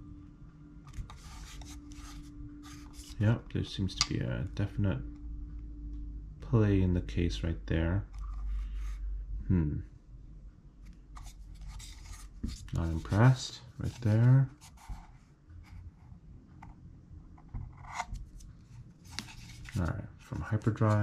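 A small metal box knocks and rubs softly against fingers as it is turned over.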